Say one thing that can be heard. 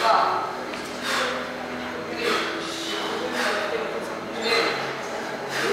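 A man breathes out hard with each lift.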